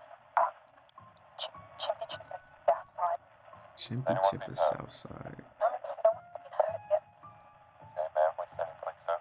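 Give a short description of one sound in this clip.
A young man speaks with animation into a microphone, sounding thin as if over a phone line.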